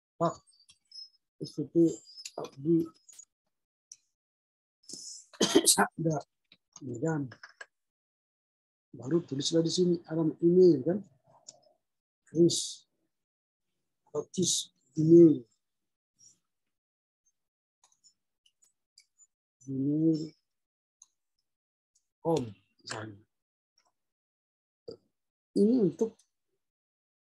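A man speaks calmly in short phrases, close to a microphone.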